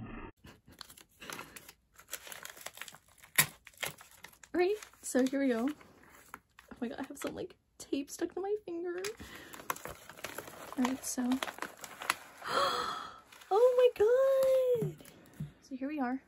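A padded paper envelope crinkles and rustles as it is handled.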